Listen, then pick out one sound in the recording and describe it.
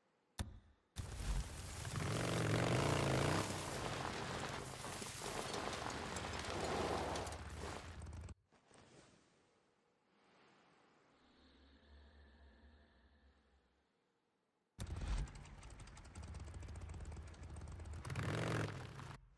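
A motorcycle engine rumbles and revs as it rides over rough ground.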